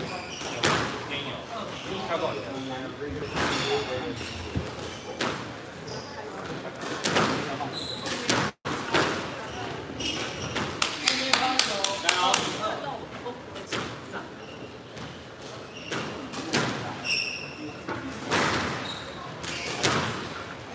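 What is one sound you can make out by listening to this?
Rackets strike a squash ball with sharp pops.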